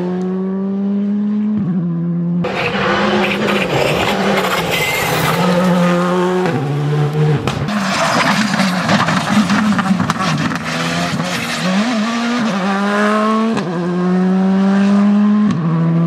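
A rally car engine roars loudly, revving hard and dropping between gear changes.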